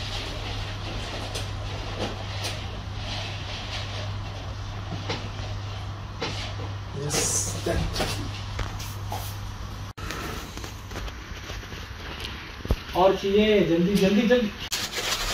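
Rubber balloons squeak and rustle as they are handled.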